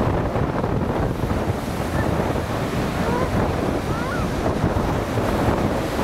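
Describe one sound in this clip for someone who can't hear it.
Waves break and wash onto the shore.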